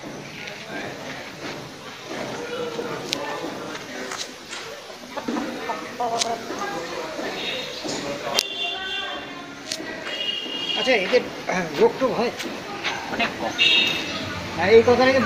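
Roosters scuffle and flap their wings.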